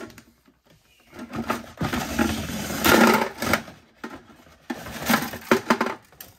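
Dry lasagne sheets slide and clatter into a plastic container.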